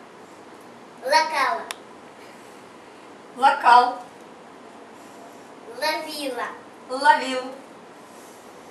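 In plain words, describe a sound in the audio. A woman speaks slowly and clearly nearby.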